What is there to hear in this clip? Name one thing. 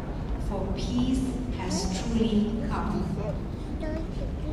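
Several women talk quietly in a large echoing hall.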